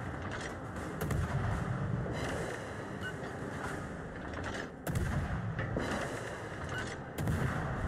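Water rushes and splashes against a moving ship's hull.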